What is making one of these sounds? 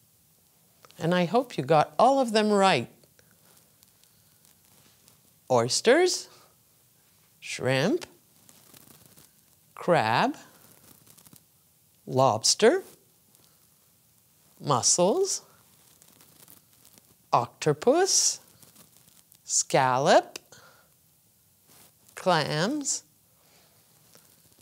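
An older woman speaks clearly into a close microphone, naming words one at a time with pauses between them.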